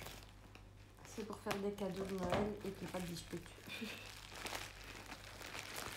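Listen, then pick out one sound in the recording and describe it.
A plastic bubble mailer crinkles as it is handled.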